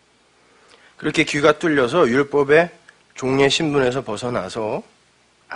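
A man speaks slowly and earnestly into a microphone.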